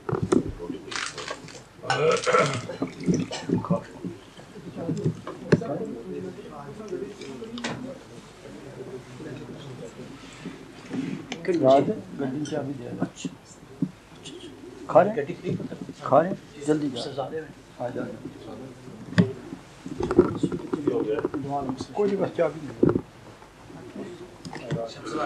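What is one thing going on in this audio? Men talk and murmur together in a small group nearby.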